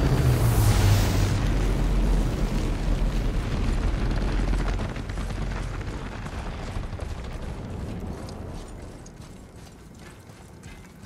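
A glowing fountain rushes with a deep roar that slowly fades.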